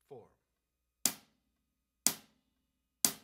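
A drum kit is struck in slow, even beats, each hit ringing out briefly.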